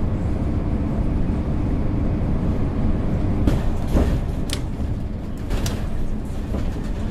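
A bus engine rumbles steadily at low speed.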